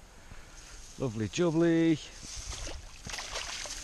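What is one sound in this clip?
A landing net splashes and drips as it is lifted out of the water.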